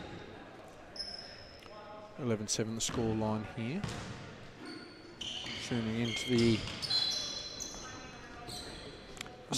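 Sneakers squeak sharply on a hard floor in an echoing gym.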